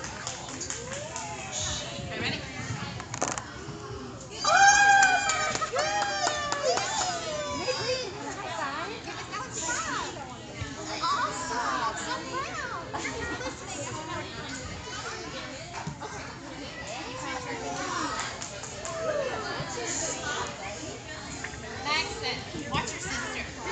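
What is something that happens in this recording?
A woman talks to children with animation.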